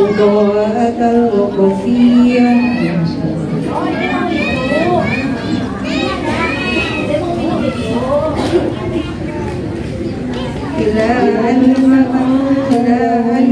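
A woman chants in a steady, melodic voice through a microphone.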